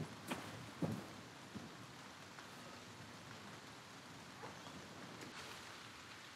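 A knife stabs into flesh with wet thuds.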